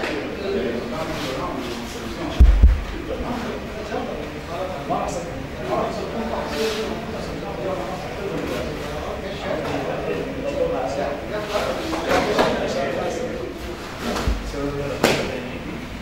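Bare feet thud and shuffle on a padded mat.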